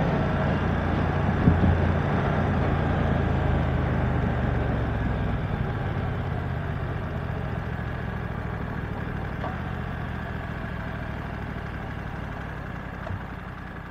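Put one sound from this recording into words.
A motorcycle engine hums steadily and winds down as the rider slows.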